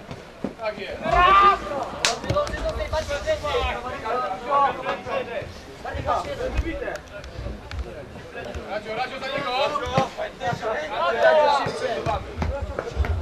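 Young men shout and call out loudly nearby, outdoors.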